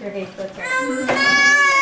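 A baby squeals loudly.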